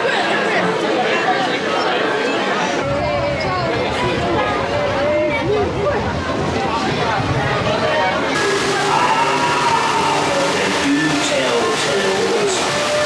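A crowd of people chatter and call out in a large echoing space.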